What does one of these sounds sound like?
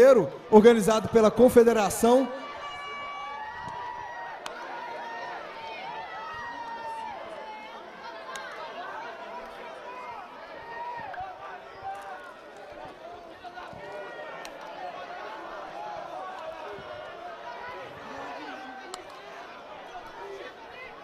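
A crowd cheers and chatters in the open air.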